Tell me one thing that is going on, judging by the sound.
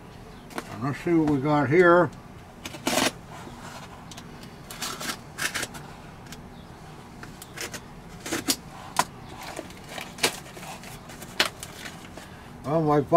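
Wood knocks and clicks as a wooden box is handled.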